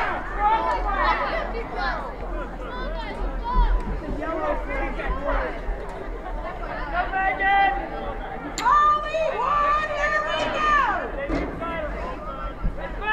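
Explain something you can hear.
Young women shout calls to each other across an open field.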